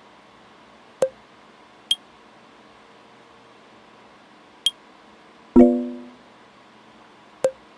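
A soft message chime sounds twice.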